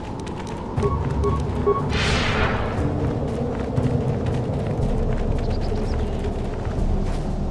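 Footsteps patter quickly along a path.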